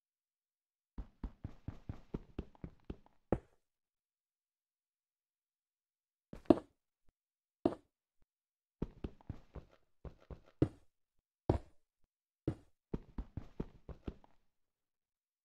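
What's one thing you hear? Footsteps tap quickly on blocks.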